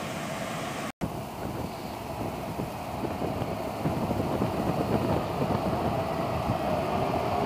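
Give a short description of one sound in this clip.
A train approaches with a growing rumble and squeal.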